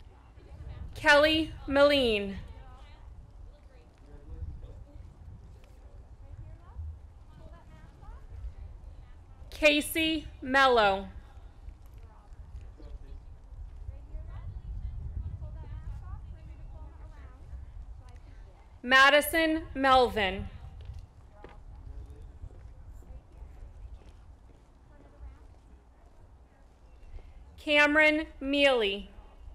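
A woman reads out names over a loudspeaker, echoing outdoors.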